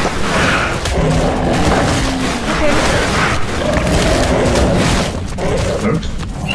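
Animals snarl and growl in a fight.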